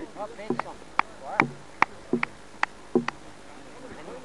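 A man claps his hands several times.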